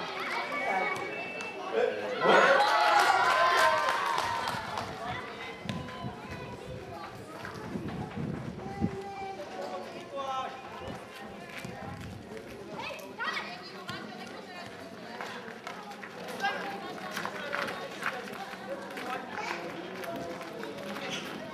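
Young players shout and cheer outdoors at a distance.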